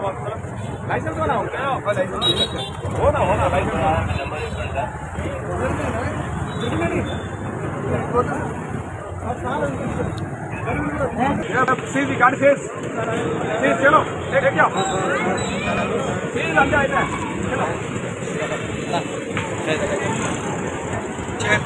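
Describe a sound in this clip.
Several men talk over one another close by, with animation.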